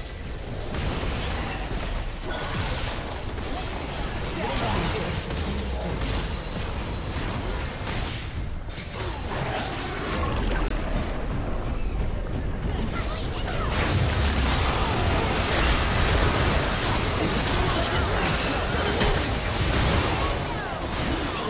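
Blasts and impacts thump again and again.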